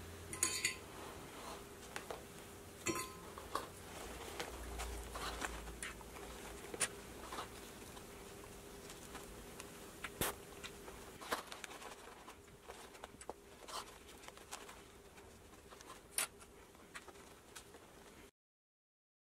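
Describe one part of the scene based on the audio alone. Small plastic clips click as they snap onto fabric.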